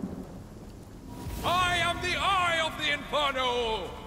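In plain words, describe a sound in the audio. Flames burst and roar as a fire spell is cast.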